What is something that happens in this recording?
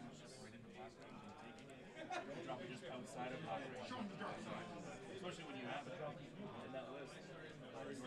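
Plastic game pieces are picked up and set down on a tabletop with soft clicks.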